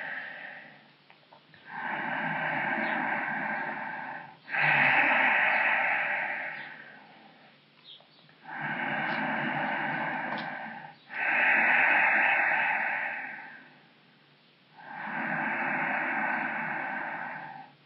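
A man breathes slowly and deeply in and out, close by.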